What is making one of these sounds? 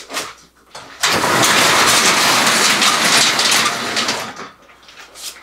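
A garage door rumbles open.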